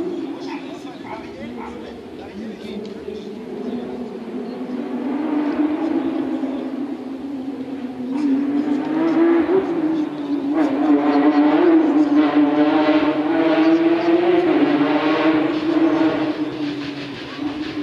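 A crowd of spectators murmurs and chatters outdoors in the distance.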